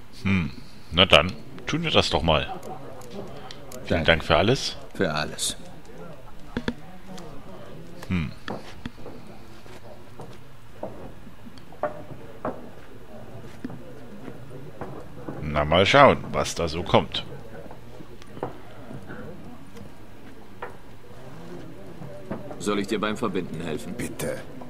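A man speaks calmly in a low, rough voice.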